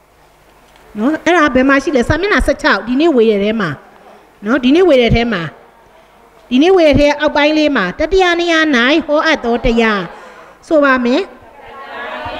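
A middle-aged woman speaks calmly into a nearby microphone, reading out.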